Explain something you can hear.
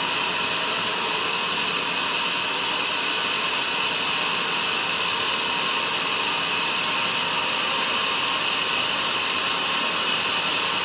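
A sawmill carriage motor hums as it rolls the log forward.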